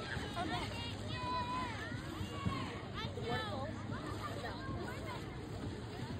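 Water splashes around wading swimmers.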